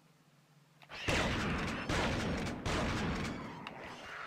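A shotgun fires several times.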